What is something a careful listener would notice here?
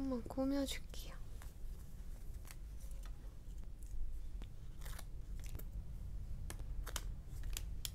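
Stickers peel off a backing sheet with soft crackles.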